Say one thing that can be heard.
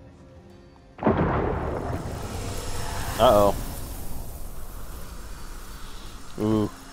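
A loud rushing whoosh bursts out and slowly fades.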